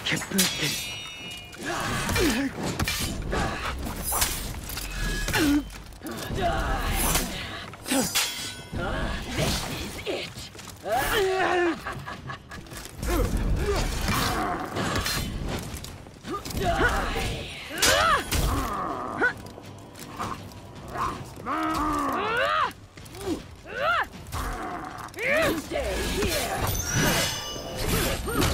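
Warriors grunt and shout as they fight.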